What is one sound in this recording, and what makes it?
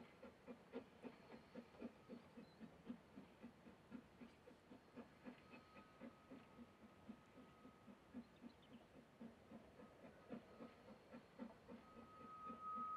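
A steam locomotive chuffs steadily in a quick rhythm at a distance.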